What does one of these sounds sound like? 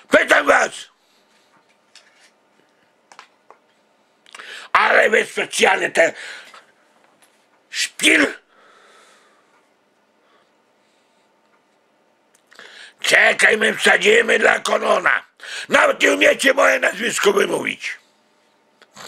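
A middle-aged man speaks loudly and emphatically, close up, in bursts with pauses.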